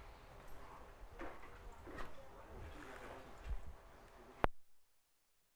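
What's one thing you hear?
Small objects rustle and click as they are handled close to a microphone.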